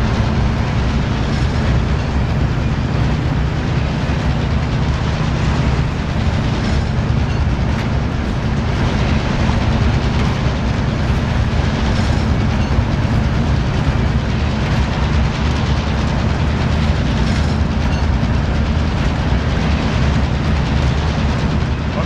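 A heavy train rumbles steadily along the tracks.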